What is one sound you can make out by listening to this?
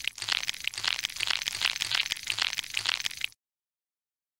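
A soft fruit squelches and splatters.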